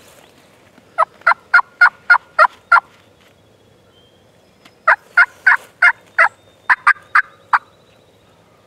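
A turkey call yelps in two quick series of sharp notes.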